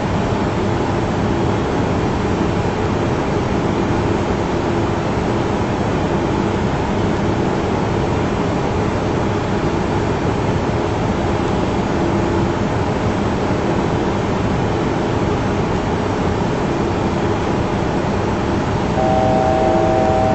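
A jet airliner's engines drone steadily from inside the cockpit.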